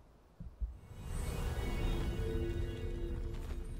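A magical shimmering whoosh swells and hums.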